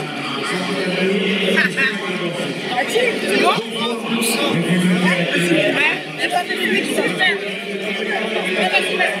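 Young women scream and squeal excitedly nearby.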